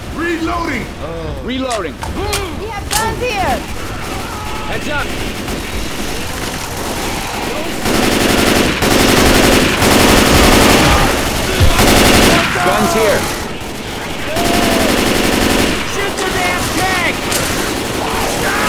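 Zombies snarl and shriek close by.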